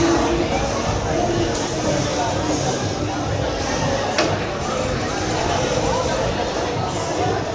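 A game's battle sounds play through a speaker.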